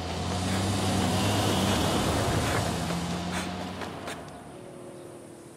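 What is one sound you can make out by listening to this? A truck engine rumbles past nearby.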